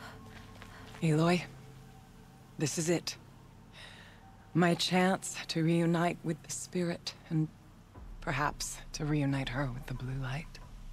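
A woman speaks calmly and earnestly, close by.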